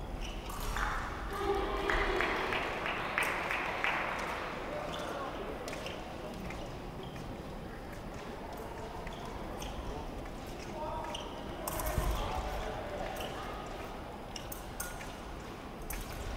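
Foil fencers' feet tap and stamp on a metal piste.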